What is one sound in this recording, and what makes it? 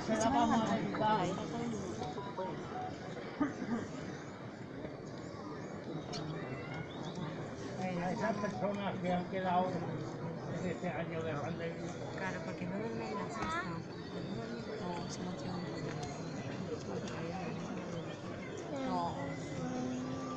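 A crowd of men and women murmurs and chatters nearby outdoors.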